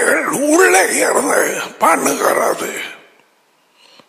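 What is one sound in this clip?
A man speaks forcefully into a headset microphone.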